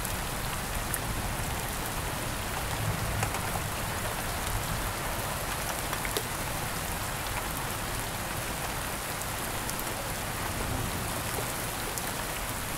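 Thunder rumbles in the distance.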